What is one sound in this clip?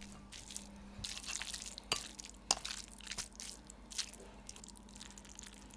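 Metal tongs click and scrape against a plate.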